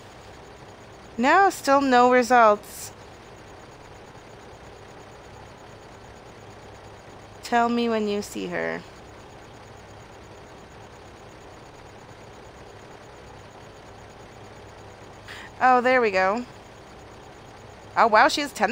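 A tractor engine idles with a low, steady hum.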